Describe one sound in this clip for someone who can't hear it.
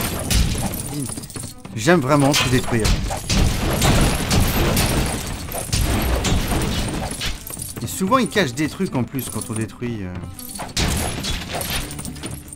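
Coins jingle and clink as they scatter.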